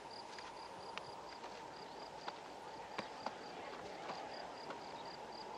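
A horse's hooves thud and scrape on dry, stony ground.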